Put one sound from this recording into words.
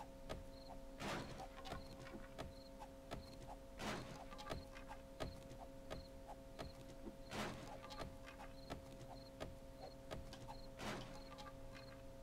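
A club thuds repeatedly against wood.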